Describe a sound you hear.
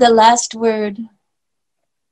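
An older woman speaks cheerfully over an online call.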